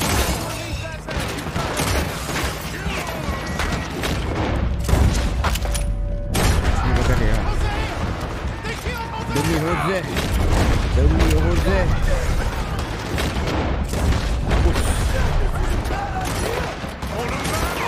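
Gunshots crack repeatedly in a loud shootout.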